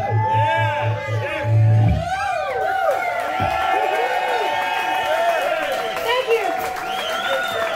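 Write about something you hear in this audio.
An electric guitar plays.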